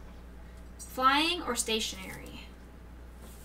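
A woman speaks with animation into a nearby microphone.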